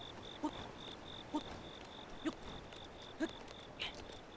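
Short climbing thumps from a video game come in a steady rhythm.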